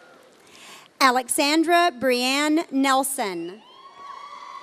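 A man reads out a name loudly through a microphone in a large echoing hall.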